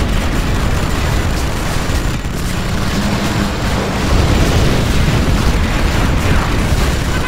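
Explosions boom and rumble in quick succession.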